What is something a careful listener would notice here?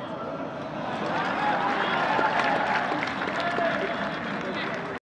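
A crowd cheers and shouts at a distance.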